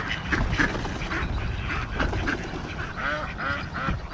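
Ducks flap their wings as they take off and fly over water.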